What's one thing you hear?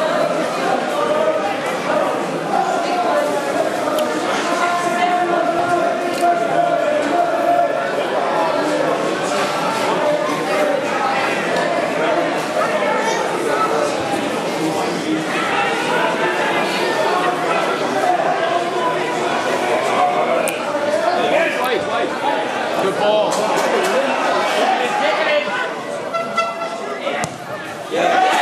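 Footballers shout to each other across the pitch.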